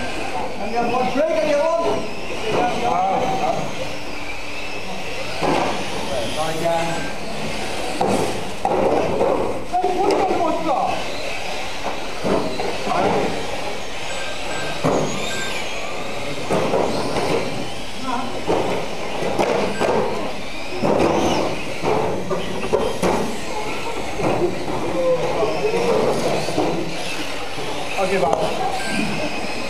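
Small electric model cars whine as they race around an indoor track.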